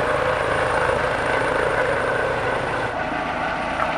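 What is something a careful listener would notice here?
A fire engine idles nearby with a low rumble.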